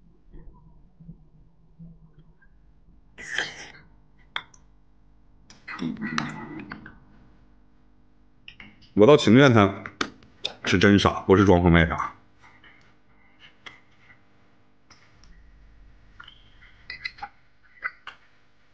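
A young man slurps and chews food.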